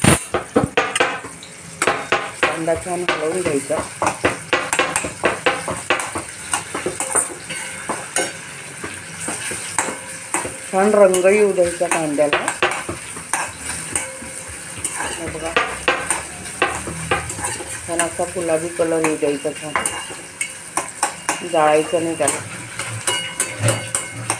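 A spatula scrapes and clatters against a metal pan.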